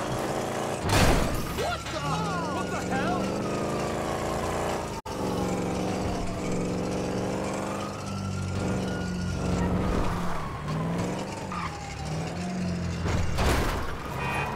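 A car crashes with a loud thud.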